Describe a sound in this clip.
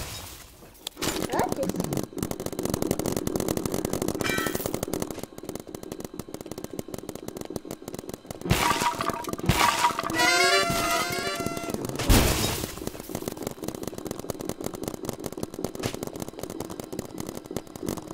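Rapid game gunfire rattles in quick bursts.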